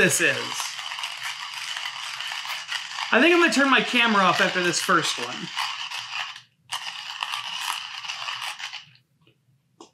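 A hand coffee grinder grinds with a steady gritty rasp.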